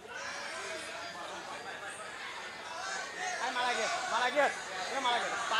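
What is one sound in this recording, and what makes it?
A crowd chatters and shouts outdoors.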